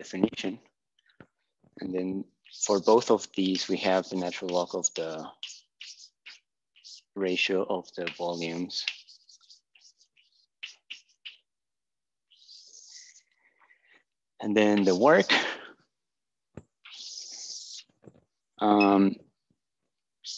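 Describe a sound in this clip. A young man speaks calmly nearby, explaining.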